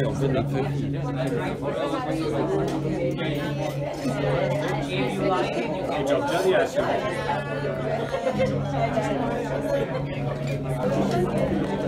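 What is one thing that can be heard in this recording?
Serving spoons scrape and clink against metal trays.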